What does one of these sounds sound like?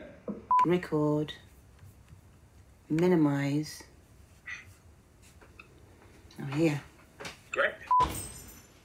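A woman speaks calmly and with pauses over an online call.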